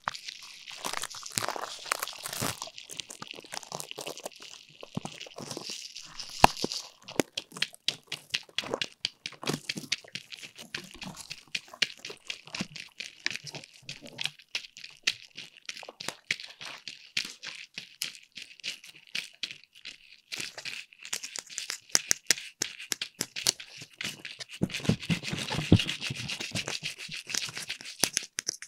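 Paper or plastic crinkles and rustles close to a microphone.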